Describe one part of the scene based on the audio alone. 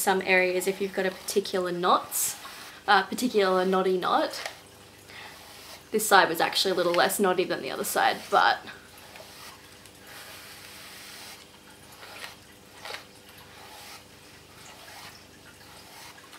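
A brush swishes through long hair.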